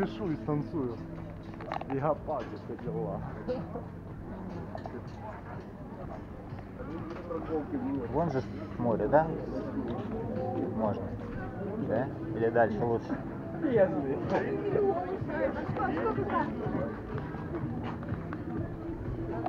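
A crowd chatters in the background outdoors.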